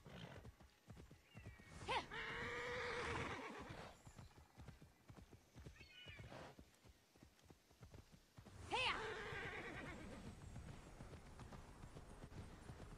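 A horse's hooves thud rapidly on grass.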